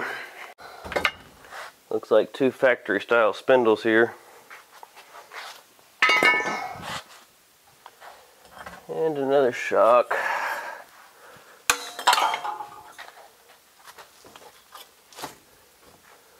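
Metal parts clank and knock.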